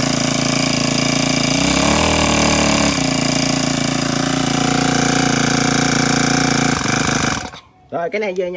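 A small petrol engine runs loudly and steadily, then abruptly cuts out.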